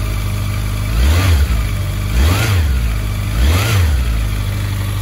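A motorcycle engine revs sharply three times.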